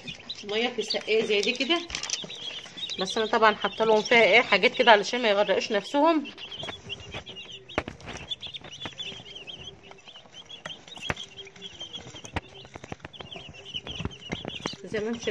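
Many chicks peep and cheep loudly close by.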